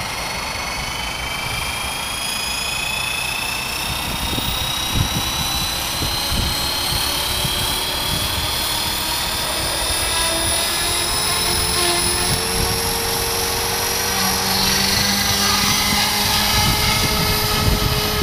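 A model helicopter's motor whines, rising in pitch as it spins up and lifts off.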